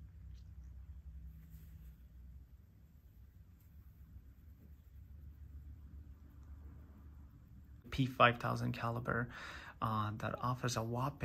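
Cloth gloves rustle softly while handling a wristwatch.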